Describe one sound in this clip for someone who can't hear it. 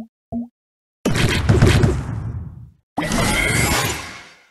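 Bright game sound effects burst and chime as tiles clear.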